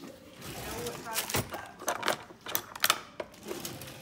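Metal cutlery clinks and rattles in a drawer.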